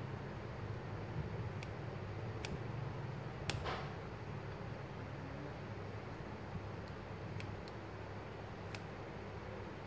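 Scissors snip through food.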